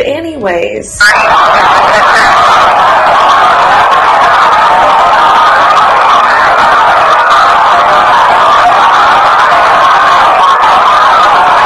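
A handheld voice recorder plays back a loud, steady rushing hiss.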